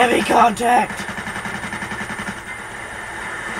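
Video game gunfire plays through a television loudspeaker.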